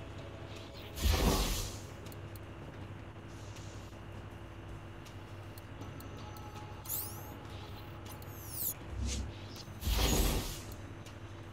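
A soft electronic whoosh sweeps in.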